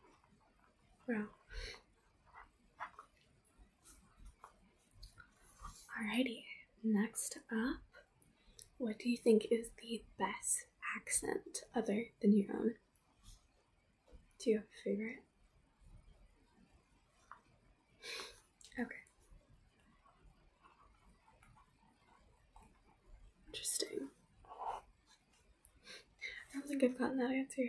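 A young woman speaks softly and close by, with pauses.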